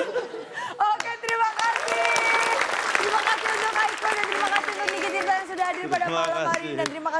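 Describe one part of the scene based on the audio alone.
A studio audience claps and cheers.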